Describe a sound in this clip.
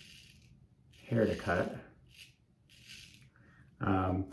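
A razor scrapes over stubble.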